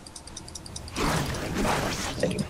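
Magic blasts and crackles in a fight.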